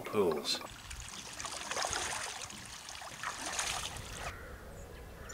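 Water splashes as a person wades in shallow water.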